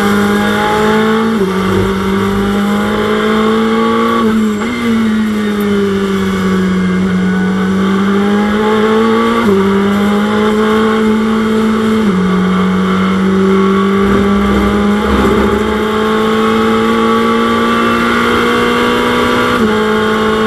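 A racing car engine roars loudly, its pitch jumping and sliding as it shifts gears.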